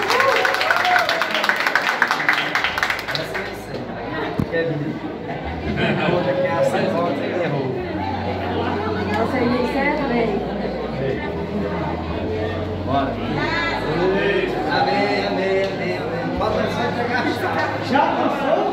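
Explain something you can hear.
Several men and women talk over one another nearby.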